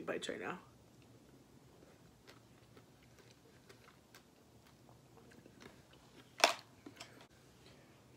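A young woman chews and smacks wetly up close.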